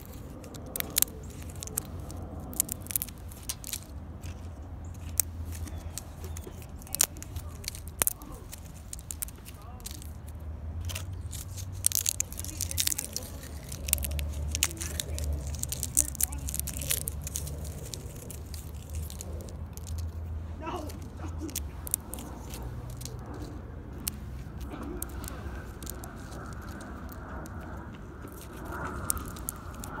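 Dry bark chips crunch and crackle close up as fingers break them apart.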